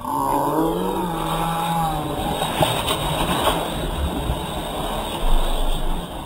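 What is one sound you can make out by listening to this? Children splash into water as they jump in.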